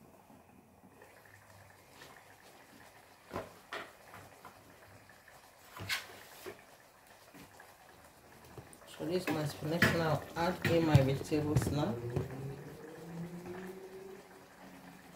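Food simmers and bubbles softly in a pot.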